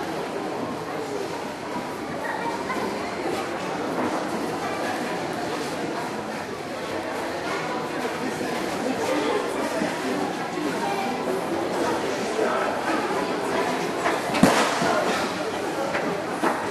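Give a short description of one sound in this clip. A crowd of people chatters steadily in a large echoing space.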